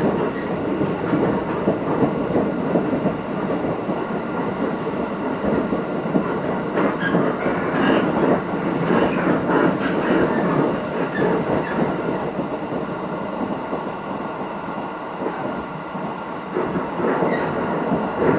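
Wind rushes in through open train windows.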